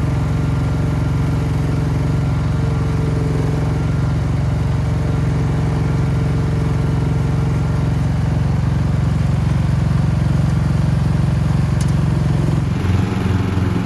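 A small excavator engine runs with a steady low rumble.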